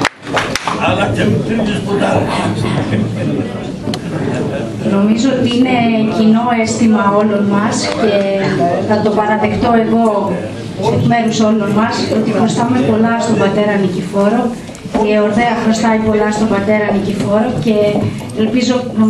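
A woman speaks steadily into a microphone, heard through a loudspeaker in a large room.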